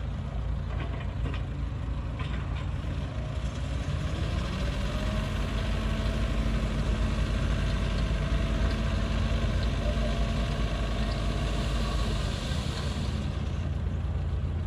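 Dirt slides and pours from a tipping truck bed.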